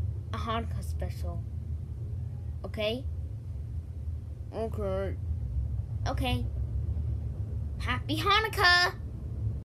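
A young boy talks close to the microphone in short bursts, with animation.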